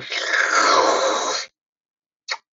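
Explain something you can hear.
Someone slurps a drink loudly.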